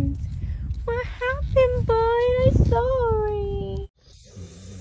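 A small dog whines and yelps loudly, close by.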